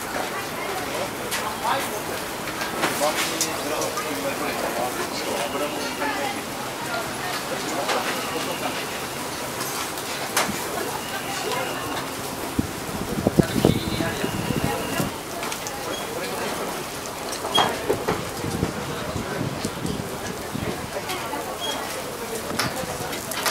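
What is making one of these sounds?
Food sizzles and crackles on a hot grill.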